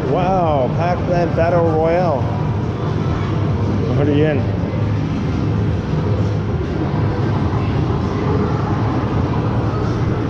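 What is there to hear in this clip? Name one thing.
A steady low din of arcade machines fills the room.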